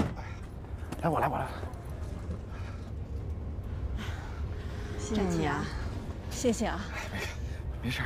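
A young woman speaks warmly and thankfully, close by.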